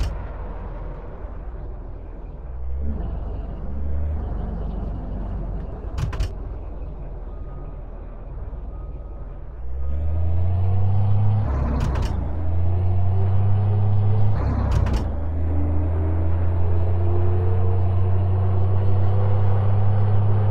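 A heavy truck engine rumbles and revs higher as it speeds up.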